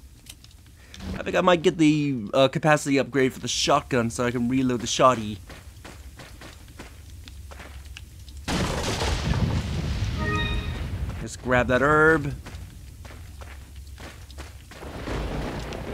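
Footsteps crunch on dirt ground.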